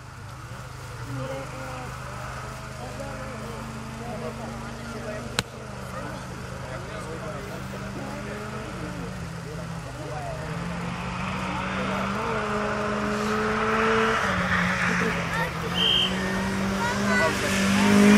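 A rally car engine drones and revs, growing louder as it approaches.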